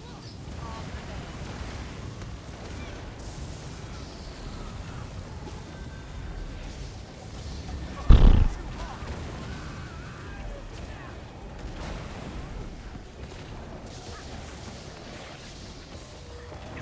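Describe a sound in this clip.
Game spell effects crackle and boom.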